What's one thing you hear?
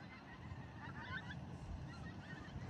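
A flock of geese calls faintly overhead.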